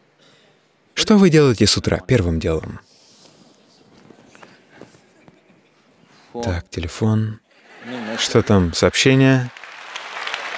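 An elderly man speaks expressively into a microphone, with pauses.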